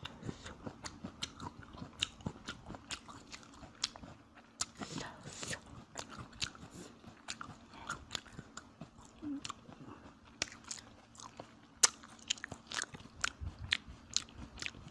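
A young man chews food noisily close to a microphone, with wet smacking clicks.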